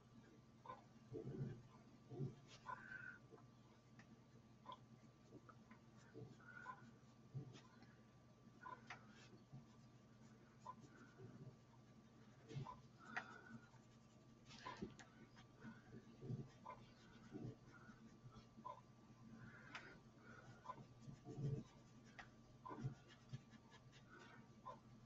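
A sponge tool rubs and scratches softly on paper.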